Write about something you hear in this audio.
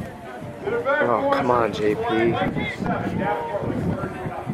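Young men talk and call out to each other close by, outdoors.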